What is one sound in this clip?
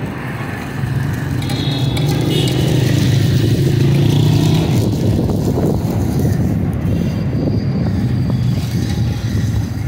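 A metal skimmer scrapes against a pan.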